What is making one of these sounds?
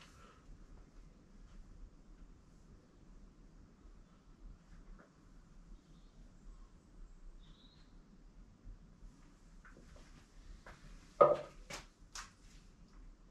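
Footsteps tread on a hard floor in a quiet room.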